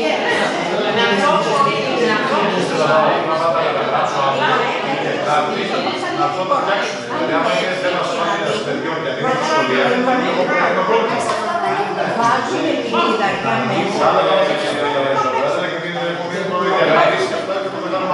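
A woman talks with animation across a table.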